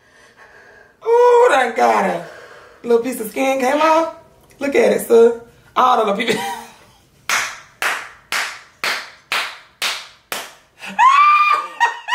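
A man laughs loudly and heartily in bursts close by.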